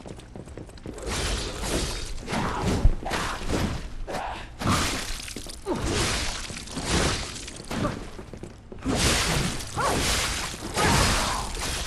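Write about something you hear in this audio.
Blades clash and slash in a fast fight.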